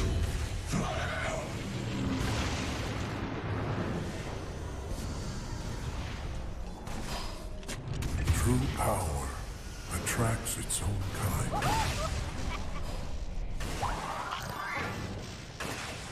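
Spell effects crackle and whoosh in a game battle.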